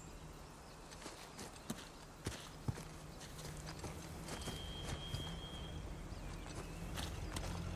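Footsteps tread on stone and grass.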